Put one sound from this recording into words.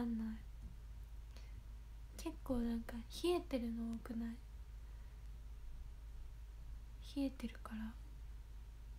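A young woman speaks softly and close by, in short bursts with long pauses.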